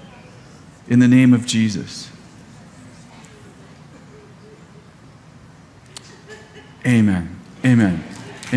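A middle-aged man speaks with emphasis through a headset microphone, in short bursts with pauses.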